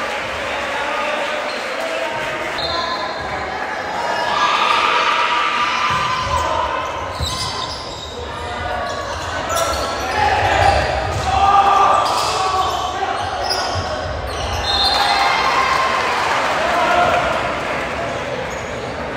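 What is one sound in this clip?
Young men shout to each other in an echoing gym.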